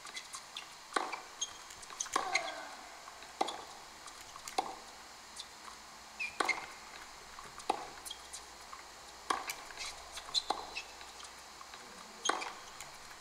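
Tennis balls are struck with a crisp pop again and again, heard through small speakers.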